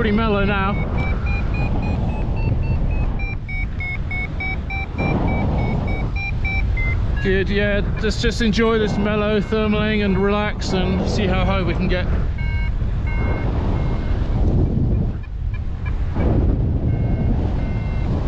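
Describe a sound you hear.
A flight instrument beeps in quick rising tones.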